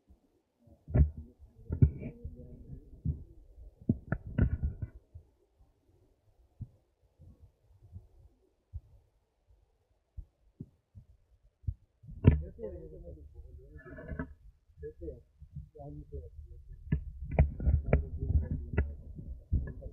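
Cloth flags flap and flutter in the wind.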